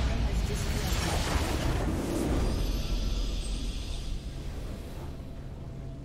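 A large explosion booms and crackles, then fades.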